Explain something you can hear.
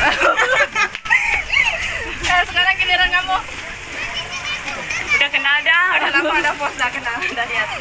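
Young women laugh close by.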